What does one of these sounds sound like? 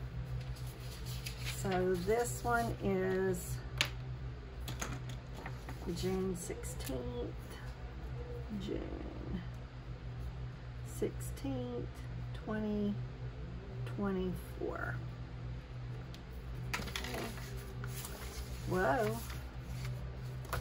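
Paper rustles as sheets are moved and shuffled.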